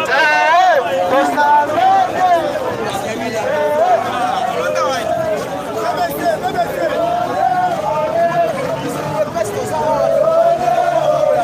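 A crowd of men chants and sings loudly outdoors, close by.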